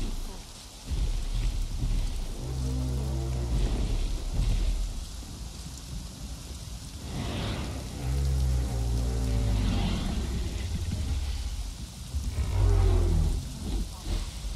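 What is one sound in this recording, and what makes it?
A large creature growls and rumbles deeply, close by.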